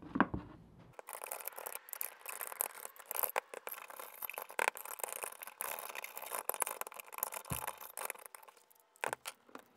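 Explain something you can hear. A screwdriver scrapes quickly against metal.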